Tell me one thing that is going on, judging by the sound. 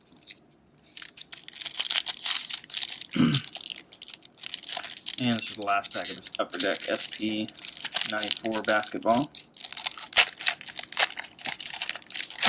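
A foil wrapper crinkles and tears as it is opened by hand.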